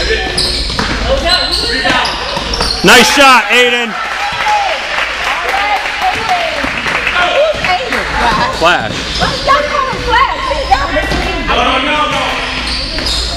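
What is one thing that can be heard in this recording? Children and adults shout and cheer in a large echoing gym.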